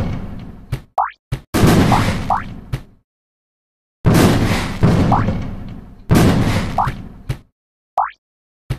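Short rising whoosh sounds play in a video game.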